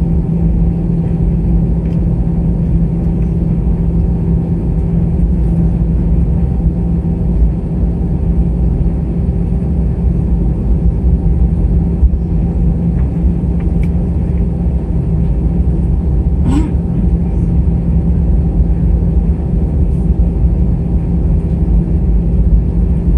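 A jet engine roars loudly and steadily, heard from inside an aircraft cabin.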